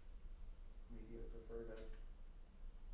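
A man murmurs briefly and quietly close to a microphone.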